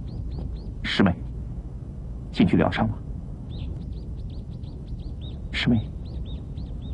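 A man speaks softly and closely.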